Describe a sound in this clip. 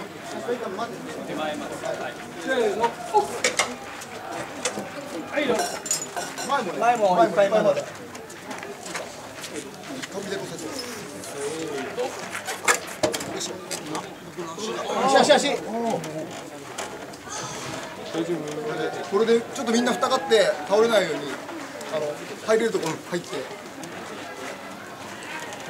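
A crowd of men talk and call out nearby outdoors.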